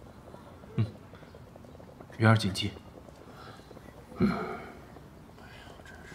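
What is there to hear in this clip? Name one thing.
A young man answers quietly nearby.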